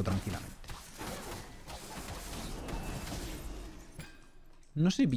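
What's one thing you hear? Magic blasts whoosh and crackle in a game.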